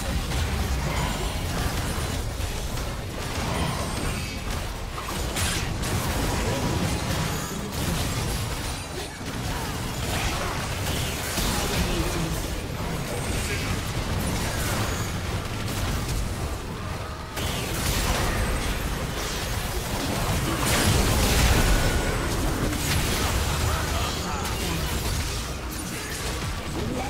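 Game spell effects crackle and burst in quick succession.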